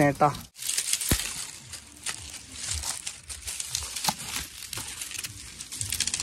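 Dry straw rustles and crackles close by.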